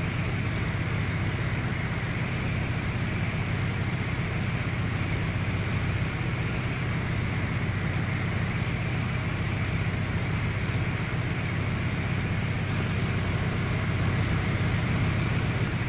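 A propeller engine drones steadily inside a small aircraft cabin.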